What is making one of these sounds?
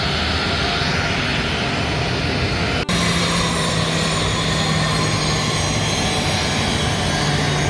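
A jet engine roars steadily nearby.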